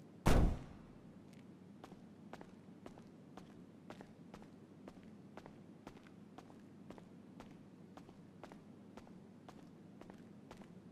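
Footsteps tap steadily on a hard floor in an echoing hall.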